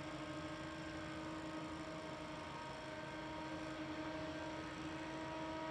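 A race car engine rumbles steadily in the distance.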